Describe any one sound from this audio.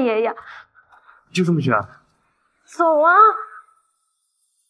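A young woman shouts in distress.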